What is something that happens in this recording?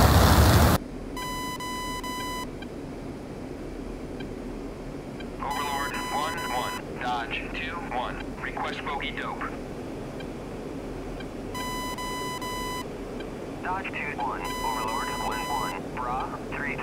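A cockpit warning tone beeps several times.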